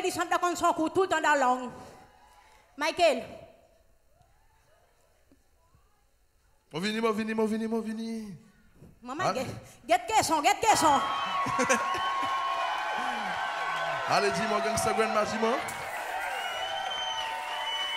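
A young girl sings loudly through a microphone.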